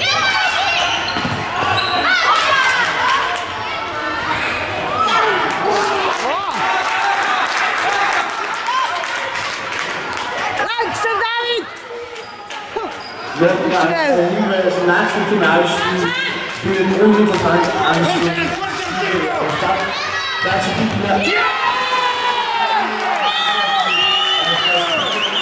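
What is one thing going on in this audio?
Young boys shout and call out in a large echoing hall.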